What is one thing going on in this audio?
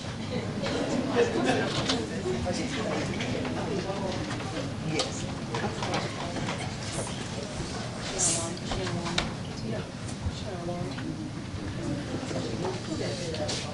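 A congregation of men and women sings together in a large echoing hall.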